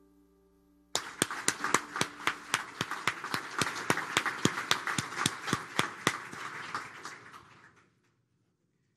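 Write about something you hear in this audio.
An audience claps and cheers in a large hall, then the applause dies away.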